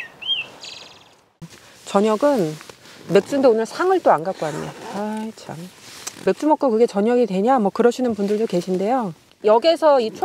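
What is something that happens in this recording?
A padded bag rustles as hands handle it.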